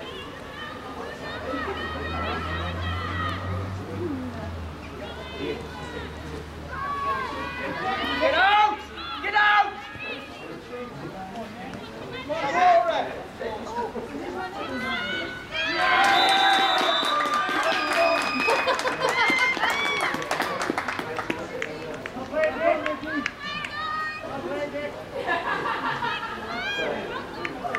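Young women shout and call to each other outdoors on an open pitch.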